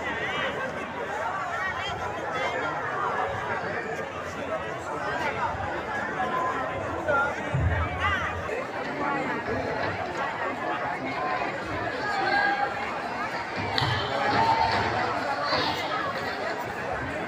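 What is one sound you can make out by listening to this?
A crowd of men, women and children chatters all around outdoors.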